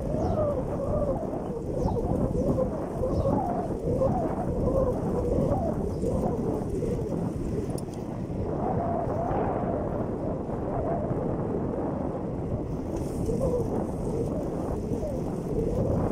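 Wind buffets the microphone, rushing and rumbling steadily while moving outdoors.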